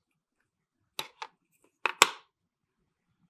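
A plastic cup is set down with a knock.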